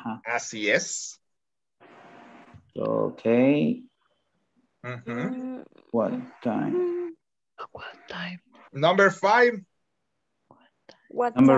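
A man speaks with animation over an online call, in short bursts with pauses.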